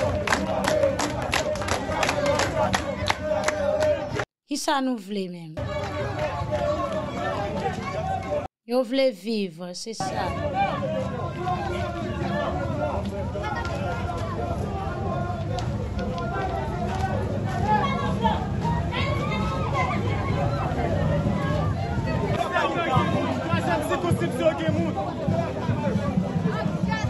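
A large crowd chants and shouts outdoors.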